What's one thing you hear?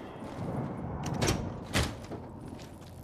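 A heavy metal door swings open with a loud clank.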